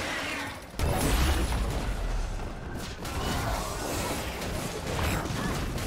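Magic blasts and hits burst and crackle in a fast fight.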